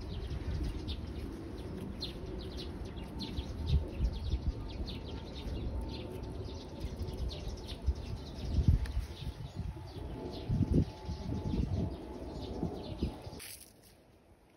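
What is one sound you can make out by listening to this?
Footsteps scuff along a paved path outdoors.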